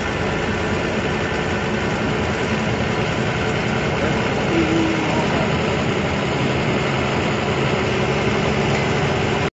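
A heavy engine rumbles steadily from inside a cab.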